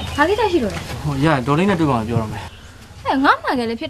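A young man speaks, close by.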